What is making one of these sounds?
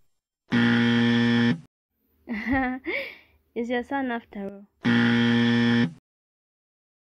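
An electronic buzzer sounds a steady, harsh tone.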